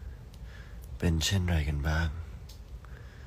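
A young man speaks briefly and softly, close by.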